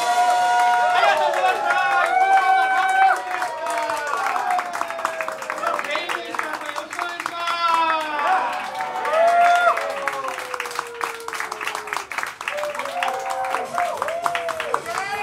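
A saxophone plays a fast melody.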